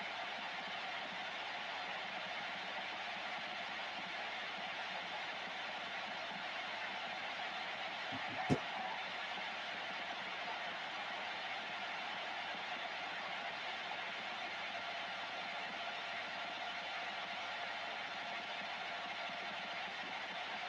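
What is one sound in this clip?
Steady radio static hisses from a loudspeaker.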